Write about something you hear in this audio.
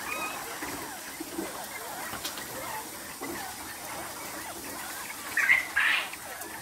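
Many caged birds chirp and peep throughout.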